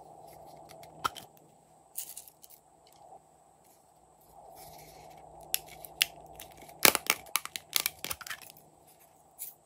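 Soft slime squishes and crackles as hands squeeze it.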